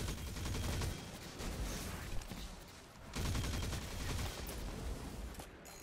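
A rifle fires rapid shots.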